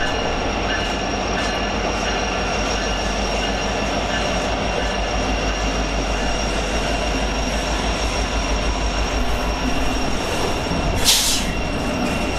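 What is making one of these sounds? Train wheels clatter rhythmically on the rails.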